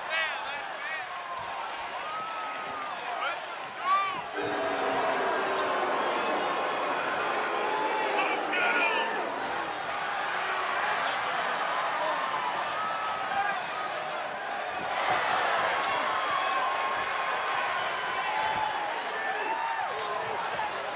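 A large crowd cheers and whistles in a big echoing arena.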